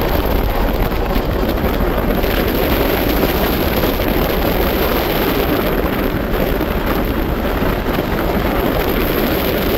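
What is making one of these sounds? Wind rushes loudly past an open train window.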